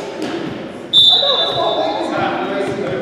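A referee's whistle blows one sharp, short blast.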